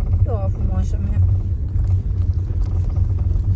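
A puppy gnaws and nibbles softly on a hand, close by.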